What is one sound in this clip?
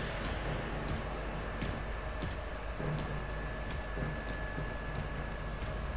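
Heavy metal footsteps clank on a hard floor.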